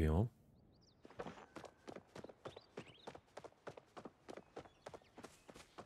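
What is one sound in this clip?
Footsteps patter quickly and evenly on a path.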